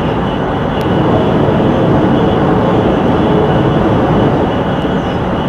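A train's roar grows louder and more booming inside a tunnel.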